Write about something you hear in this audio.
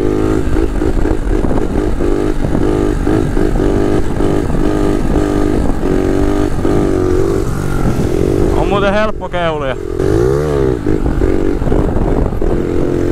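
A motorcycle engine revs up and down in quick bursts close by.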